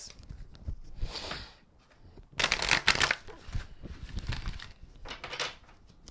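Playing cards riffle and slap as they are shuffled.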